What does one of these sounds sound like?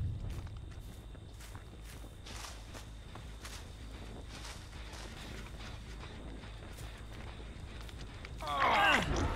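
Footsteps crunch through dry grass and corn stalks.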